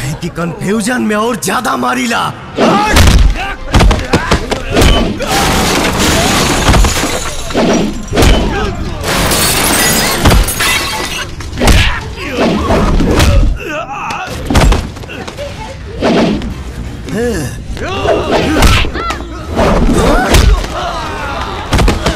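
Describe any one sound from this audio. Punches and kicks land with loud thuds.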